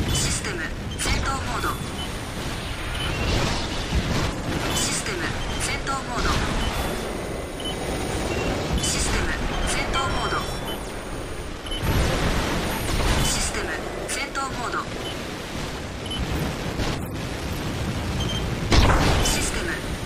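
Explosions boom in a video game.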